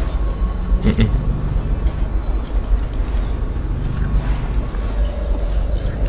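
Footsteps clank on a metal grate.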